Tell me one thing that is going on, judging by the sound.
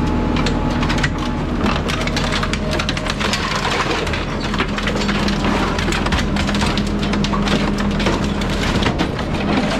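A heavy machine hums and whines steadily.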